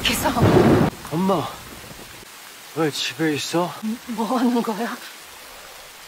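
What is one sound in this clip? A woman speaks in a frightened, trembling voice nearby.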